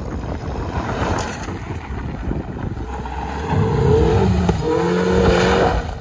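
A small car's engine revs hard nearby.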